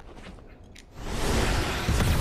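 A magic blade swings with a loud whoosh.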